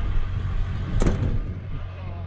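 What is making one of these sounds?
A truck door clunks shut.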